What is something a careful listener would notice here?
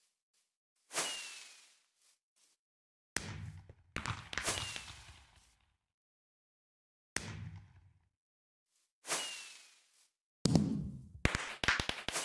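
Firework sparks crackle and fizzle after the bursts.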